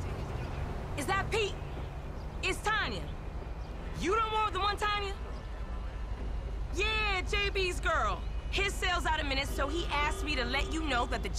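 A young woman talks on a phone with animation.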